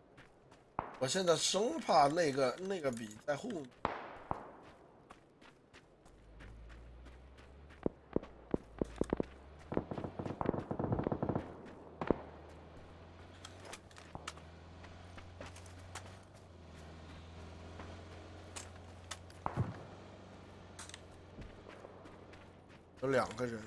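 Footsteps crunch through dry grass and dirt.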